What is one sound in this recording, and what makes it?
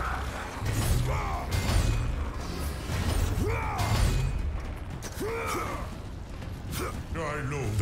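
A deep rumbling roar rolls underneath.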